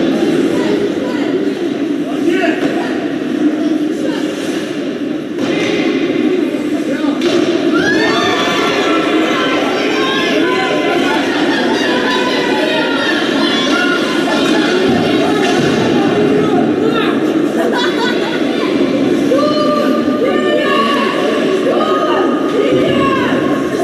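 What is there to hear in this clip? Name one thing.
A crowd of spectators chatters and calls out in a large echoing arena.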